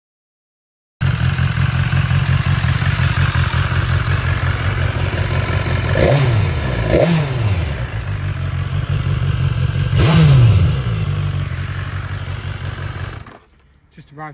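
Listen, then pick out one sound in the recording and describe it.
A motorcycle engine idles with a low, rapid rumble close by.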